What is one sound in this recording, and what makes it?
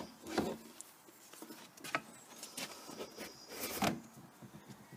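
A plastic pipe knocks and scrapes against a plastic housing.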